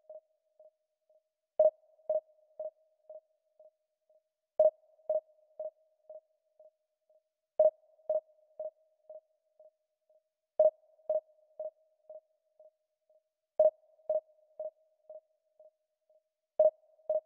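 A short electronic beep sounds every three seconds, each followed by fading echoes.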